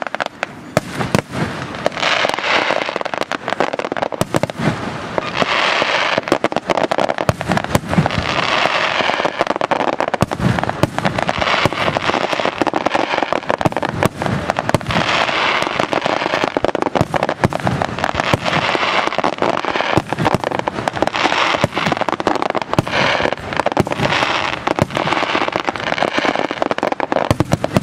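Fireworks burst with rapid loud bangs and pops outdoors.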